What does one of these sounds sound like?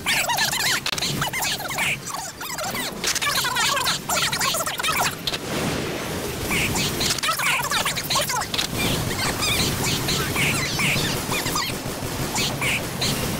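Jet thrusters roar.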